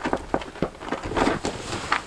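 Boots crunch in snow.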